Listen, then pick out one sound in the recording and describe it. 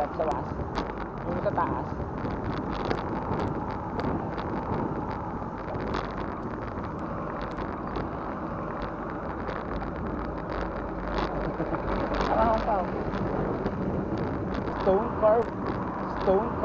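A bicycle rattles and clicks over the road.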